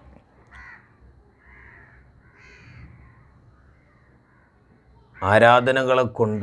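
A man speaks closely into a microphone, quietly at first and then loudly in a chanting voice.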